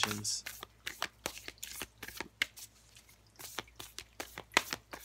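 Cards shuffle and riffle in hands with quick, soft flicks and taps.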